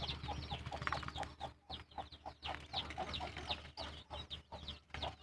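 Chickens peck at grain in a metal feeder with quick taps.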